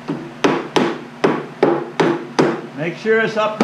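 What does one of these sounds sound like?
Hammer blows knock on wood in a quick, even rhythm.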